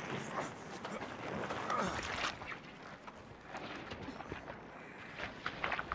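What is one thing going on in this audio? A monster growls and snarls while grappling.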